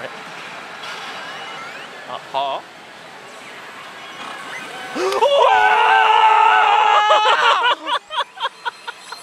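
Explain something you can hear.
A slot machine plays electronic jingles and beeps.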